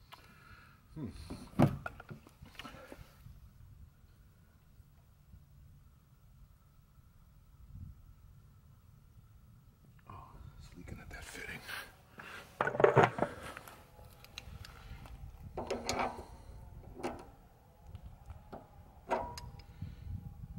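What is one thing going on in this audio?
Metal parts of a small engine click and rattle as they are handled.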